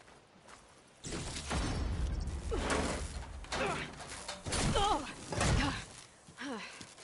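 A huge metal machine creaks, clanks and rumbles loudly.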